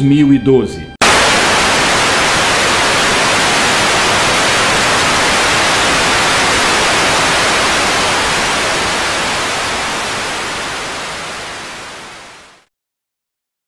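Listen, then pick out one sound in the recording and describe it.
Loud static hiss plays steadily, then slowly fades away.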